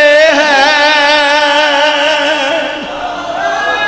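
A man sings loudly with a wavering voice through a microphone.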